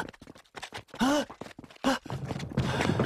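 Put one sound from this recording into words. A young man gasps.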